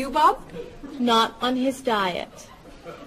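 A young woman replies plainly.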